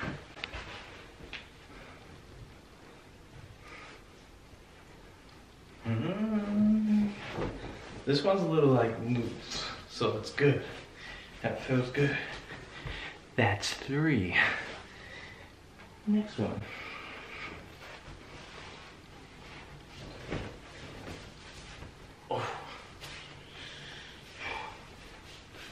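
Fabric rustles as clothes are pulled on.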